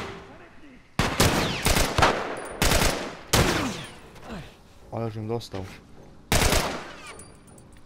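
A gun fires several loud shots that ring out in an echoing room.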